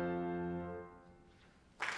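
A grand piano's final chord dies away in a reverberant hall.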